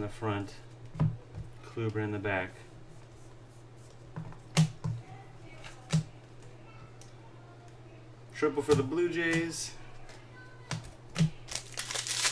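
Trading cards click softly as they are flipped through.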